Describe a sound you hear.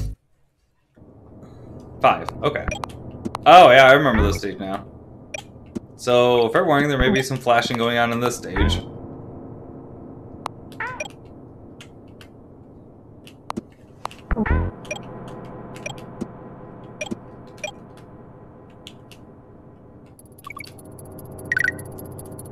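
Soft, steady video game music plays.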